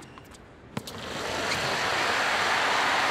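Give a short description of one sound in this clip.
A crowd claps and cheers.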